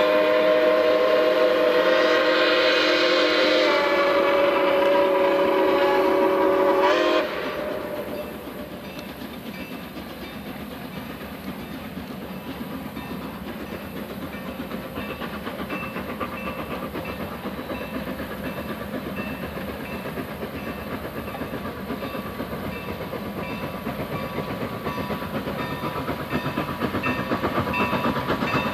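A train rumbles and clanks steadily along the tracks.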